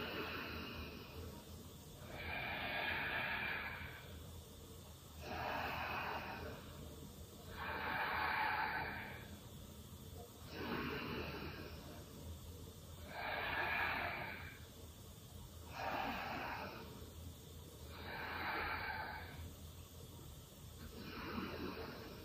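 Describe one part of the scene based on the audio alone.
A young woman breathes deeply and slowly in and out, close by.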